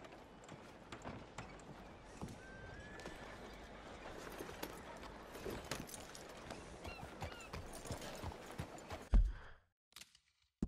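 Horse hooves clop on a muddy road.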